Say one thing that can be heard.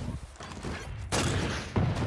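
Flames roar from a game weapon.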